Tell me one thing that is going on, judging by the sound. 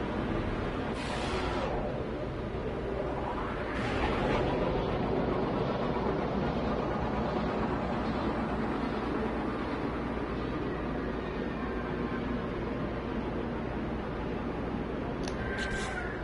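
A spaceship engine roars steadily in flight.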